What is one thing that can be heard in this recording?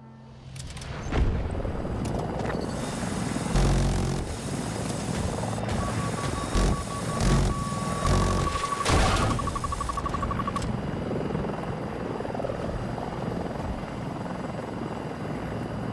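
An aircraft engine roars steadily throughout.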